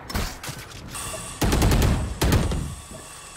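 Rapid gunshots crack in short bursts.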